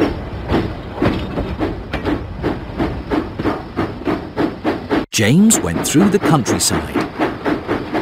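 A steam engine chuffs steadily along the tracks.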